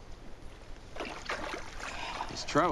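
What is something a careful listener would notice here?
Water splashes.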